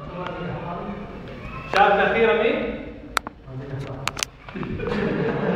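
A man speaks to a group in a large echoing hall.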